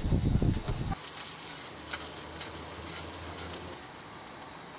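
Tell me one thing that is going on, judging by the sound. Food sizzles in a hot frying pan.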